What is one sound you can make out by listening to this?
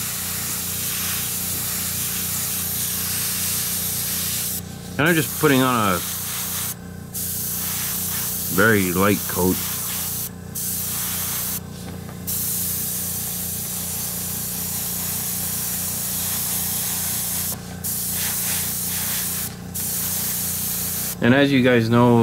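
An airbrush hisses steadily in short bursts.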